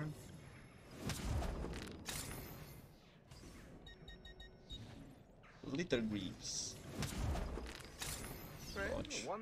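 Whooshing sweeps sound as game menus open and close.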